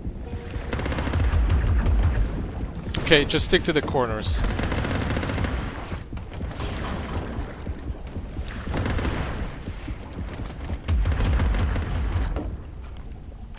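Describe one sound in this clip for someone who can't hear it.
Rapid gunfire rattles in muffled bursts.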